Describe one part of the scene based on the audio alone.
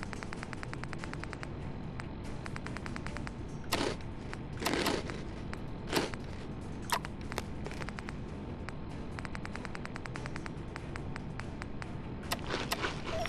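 Soft interface clicks tick rapidly as items are scrolled through.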